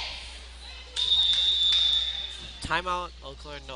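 A referee's whistle blows a long shrill blast.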